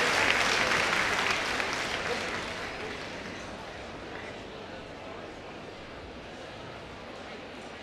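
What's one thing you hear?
An audience applauds and cheers in a large hall, slowly fading.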